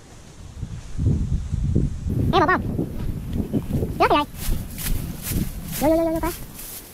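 Dry leaves and branches rustle as a man pushes through brush.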